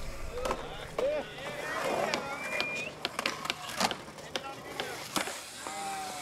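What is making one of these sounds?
A skateboard clacks and knocks against concrete.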